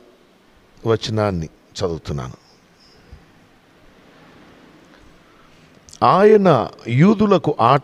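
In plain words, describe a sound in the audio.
A man speaks steadily into a microphone, with pauses.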